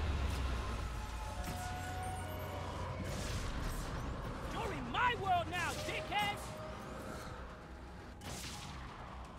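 Guns fire with bright energy blasts.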